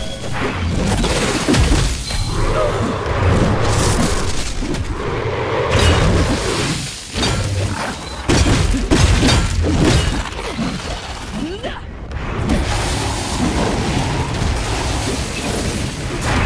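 Fire roars and crackles in bursts.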